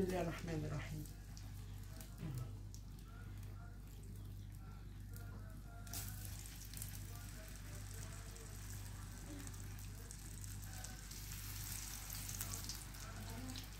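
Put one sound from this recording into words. Chicken sizzles as it fries in a hot pan.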